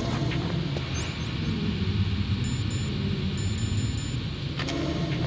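Electronic menu beeps chirp in quick bursts.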